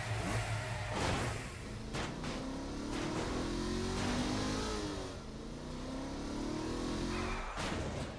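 A car thuds hard against something.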